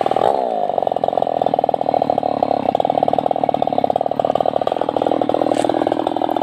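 A chainsaw engine runs loudly with a fast, rattling idle after a brief drop in pitch.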